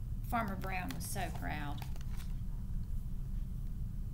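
Book pages turn with a soft rustle.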